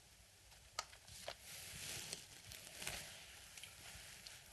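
A man speaks on a phone in a low voice.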